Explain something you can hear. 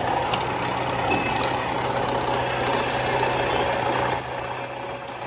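A drill press motor hums steadily.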